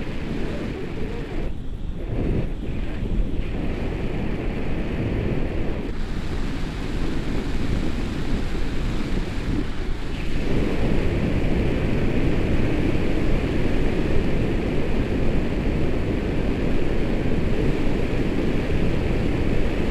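Wind rushes and buffets a microphone during a paraglider flight.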